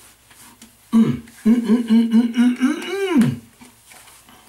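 A middle-aged man lets out a long drawn-out groan.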